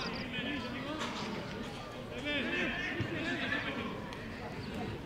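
Young men shout and call to each other across an open outdoor pitch.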